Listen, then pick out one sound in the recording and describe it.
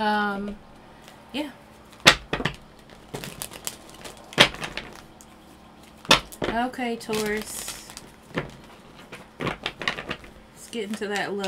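Cards riffle and snap as they are shuffled.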